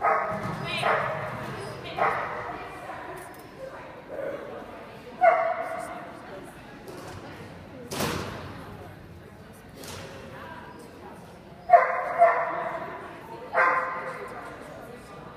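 A dog barks loudly in short bursts in a large echoing hall.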